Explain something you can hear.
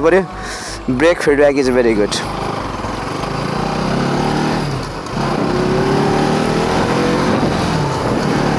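A motorcycle engine hums and rises in pitch as it speeds up.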